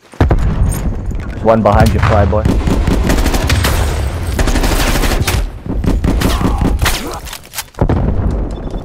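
Rapid gunfire cracks loudly in bursts.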